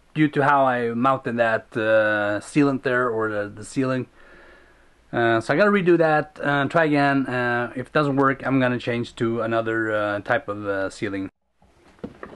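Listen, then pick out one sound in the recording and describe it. A man talks close up, calmly and clearly.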